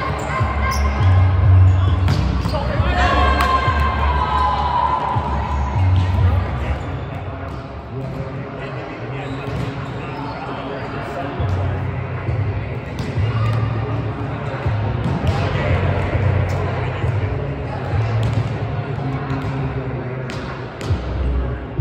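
Young women call out and chatter in a large echoing hall.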